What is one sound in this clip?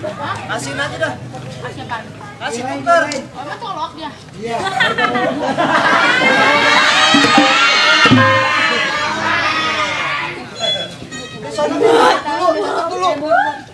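A small percussion ensemble plays metallic chimes and drums.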